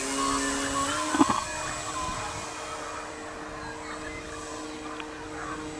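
A small propeller plane drones steadily overhead, its engine pitch shifting slightly.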